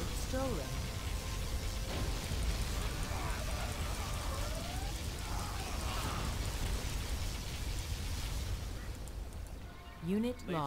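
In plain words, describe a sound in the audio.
Fires crackle and burn.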